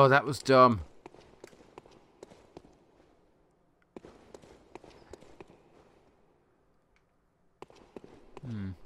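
Footsteps tap on a stone floor at a walking pace.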